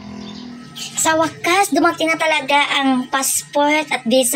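A young woman speaks with feeling, close by.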